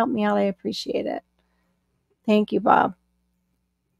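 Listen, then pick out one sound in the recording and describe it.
A woman speaks animatedly through an online call.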